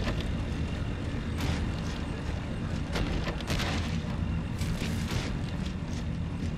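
Heavy footsteps thud slowly on a wooden floor.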